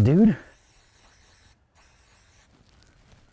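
An aerosol can hisses in short sprays.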